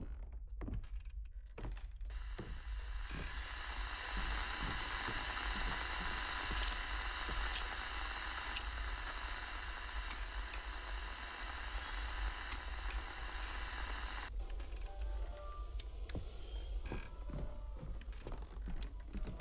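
Footsteps thud slowly on a wooden floor and stairs.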